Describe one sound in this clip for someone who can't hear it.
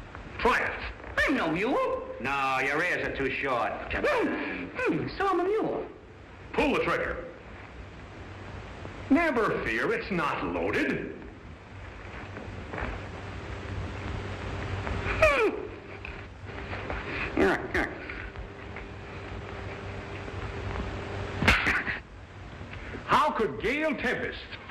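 Men speak with animation, heard through an old, hissy recording.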